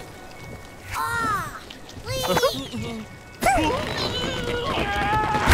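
A cartoon bird squawks in short, high chirps.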